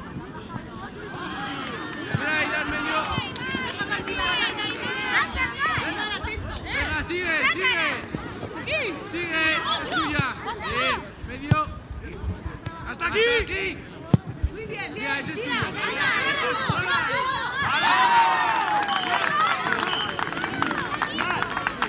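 Children shout and call out on an outdoor pitch.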